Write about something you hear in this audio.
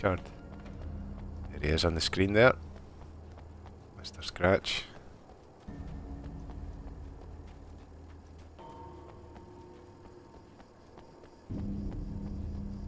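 Footsteps run on a hard road.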